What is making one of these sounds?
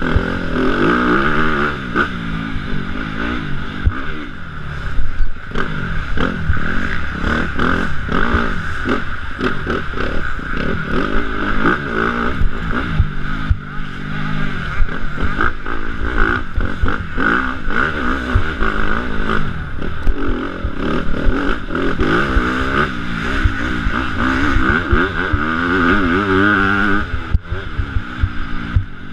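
Knobby tyres thump and scrape over a bumpy dirt track.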